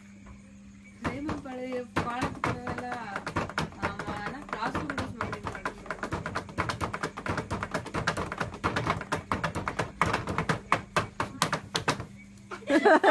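Fingers tap and knock on a wooden table.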